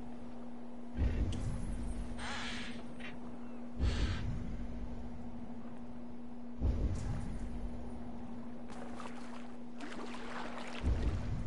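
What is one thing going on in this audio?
A pole plunges into water with a deep splash in slow, regular strokes.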